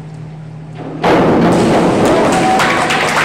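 A diver splashes into the water.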